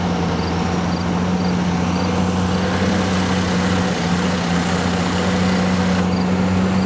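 A vehicle engine hums steadily as it approaches.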